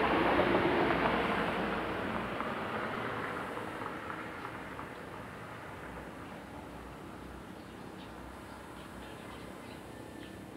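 A distant aircraft drones overhead and slowly fades.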